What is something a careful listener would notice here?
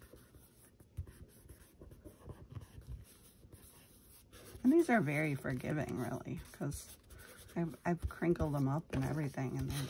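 Paper rustles and slides under hands.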